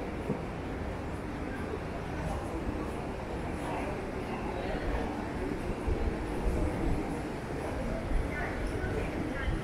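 A crowd of people chatter faintly in the distance outdoors.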